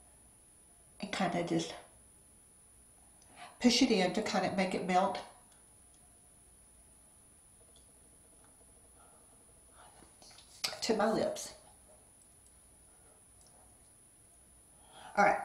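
A middle-aged woman talks with animation close to a microphone, in short bursts with pauses.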